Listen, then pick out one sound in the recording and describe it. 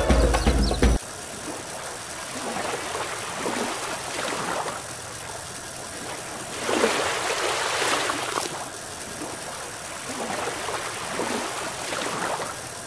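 Gentle waves lap against a boat.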